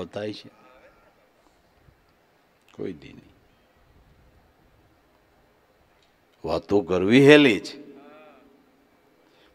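An older man speaks calmly into a microphone in a large echoing hall, with long pauses.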